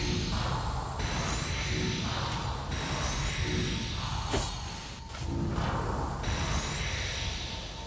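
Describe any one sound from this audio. A magical charge hums and crackles.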